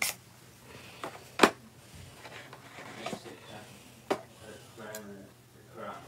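Plastic knocks and clicks as a woman handles a brush.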